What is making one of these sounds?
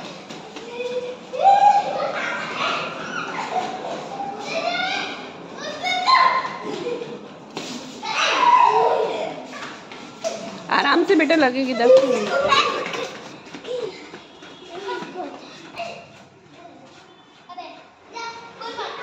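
Young children shout and squeal excitedly nearby, in a space with a slight echo.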